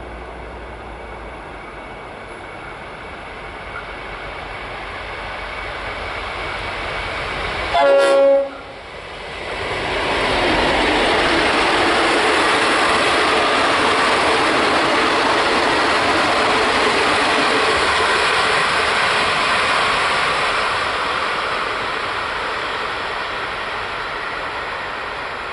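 A diesel locomotive rumbles as it approaches, passes close by and fades into the distance.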